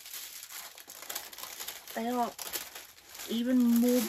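Plastic packaging crinkles.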